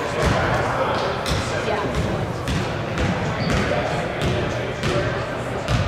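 Sneakers squeak and thump on a wooden court.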